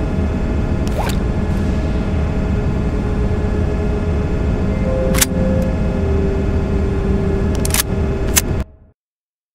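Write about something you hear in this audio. A handgun clicks sharply as it is handled.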